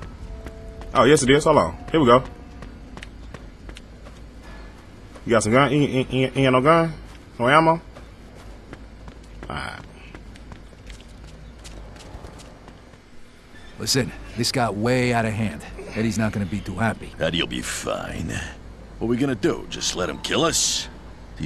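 A man talks with animation into a close headset microphone.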